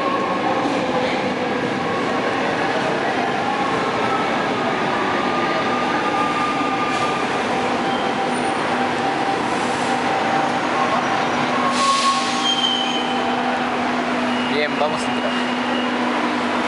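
A train rumbles into an echoing station and slows to a stop.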